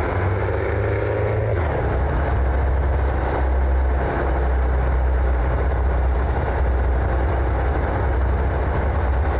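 A truck engine rumbles steadily as it drives.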